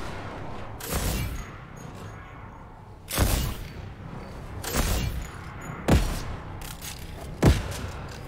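Gunshots fire in a video game, sharp and loud.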